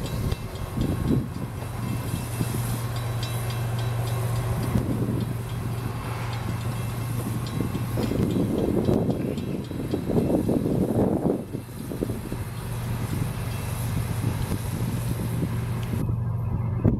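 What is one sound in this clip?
A diesel locomotive engine drones steadily as a train slowly approaches.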